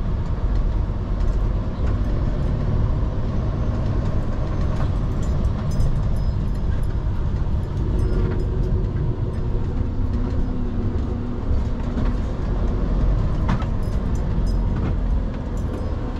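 A heavy lorry engine rumbles steadily from inside the cab.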